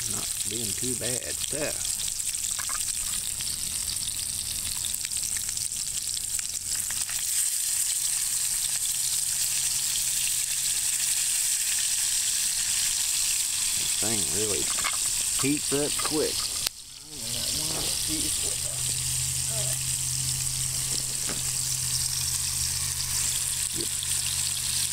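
Food sizzles in hot oil in a pan.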